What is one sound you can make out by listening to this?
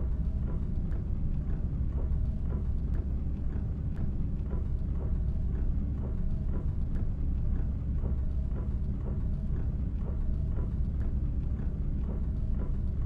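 A bus engine hums steadily with a low drone.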